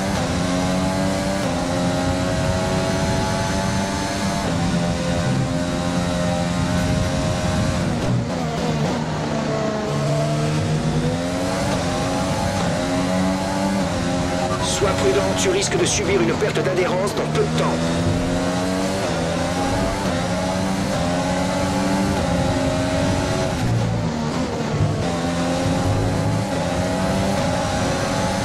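A racing car engine screams at high revs, rising and dropping as it shifts gears and brakes.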